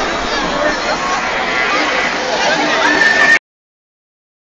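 A crowd chatters and calls out outdoors.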